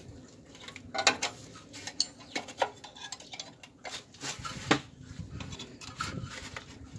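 Metal parts clink and scrape as they are handled.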